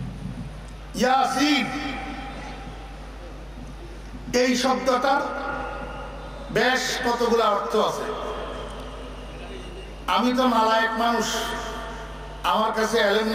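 An elderly man preaches loudly and with passion through a microphone and loudspeakers, echoing in a large space.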